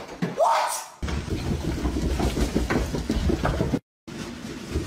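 A body thumps and tumbles down stairs.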